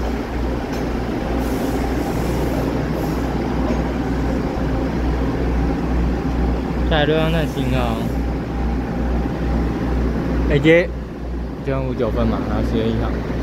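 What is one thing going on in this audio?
A diesel train engine rumbles steadily as the train rolls slowly into the station.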